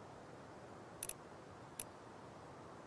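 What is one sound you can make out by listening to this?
A menu selection ticks twice.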